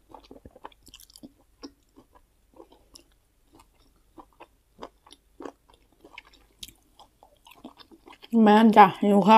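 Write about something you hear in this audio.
A young woman chews food with wet, crunchy mouth sounds close to a microphone.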